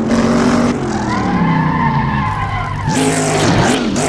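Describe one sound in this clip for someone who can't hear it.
A racing car engine drops in pitch as the car brakes hard for a bend.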